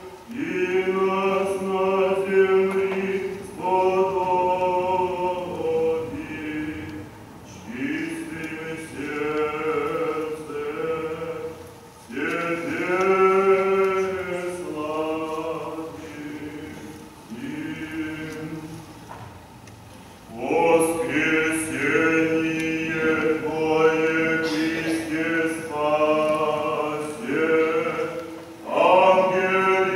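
A choir of mixed voices sings a slow chant in a large echoing hall.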